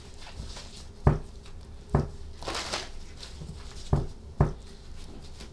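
Cards tap on a table.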